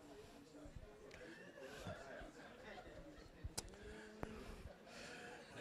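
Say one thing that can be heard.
An audience laughs softly.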